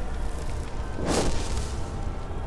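A magic spell bursts with a sharp whoosh.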